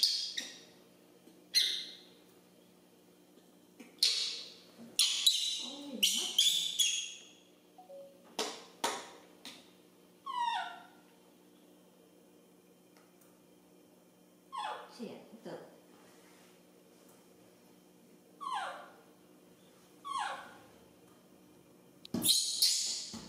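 A baby monkey squeals and cries in short, high calls, close by.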